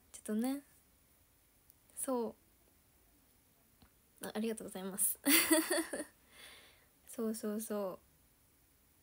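A young woman speaks softly and cheerfully close to a microphone, with pauses.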